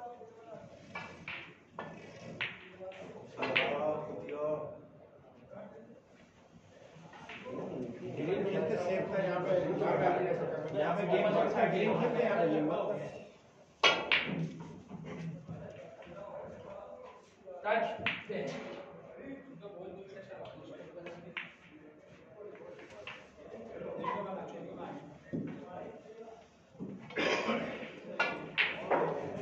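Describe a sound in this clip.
Several men talk and chatter close by.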